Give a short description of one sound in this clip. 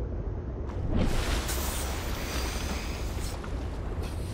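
Water splashes and rushes as a submarine breaks the surface.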